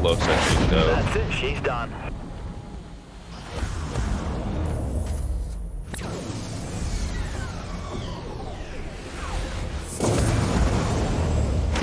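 Explosions blast loudly.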